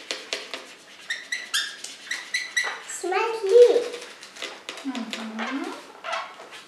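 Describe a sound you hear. A balloon squeaks as it is gripped and rubbed.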